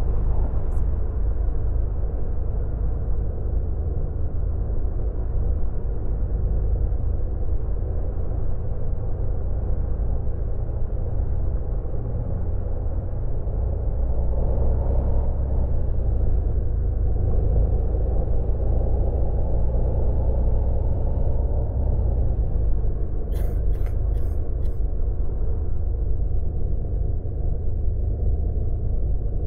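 A bus engine hums steadily at cruising speed.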